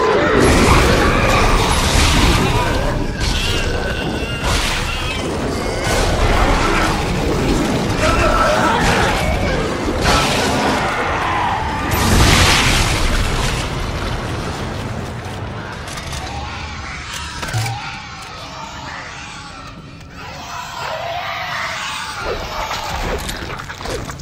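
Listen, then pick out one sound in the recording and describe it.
Gunfire blasts in loud bursts.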